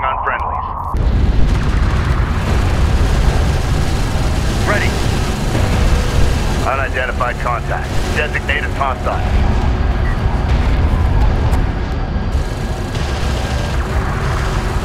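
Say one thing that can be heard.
Gunfire and explosions rumble in a battle.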